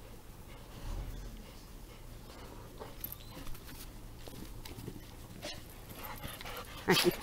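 Dogs pad and run across grass.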